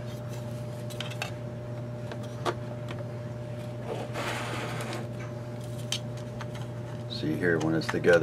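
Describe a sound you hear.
Thin plastic model parts click and rustle as they are handled.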